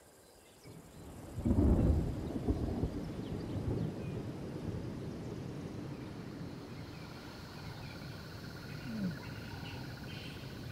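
Thunder rumbles deep and long, rolling on as a storm gathers.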